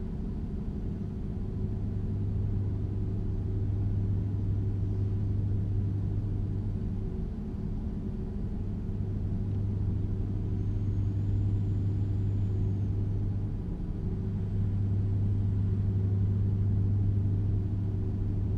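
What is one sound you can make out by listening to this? A truck's diesel engine drones steadily at cruising speed.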